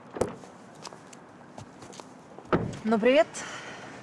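A car door shuts.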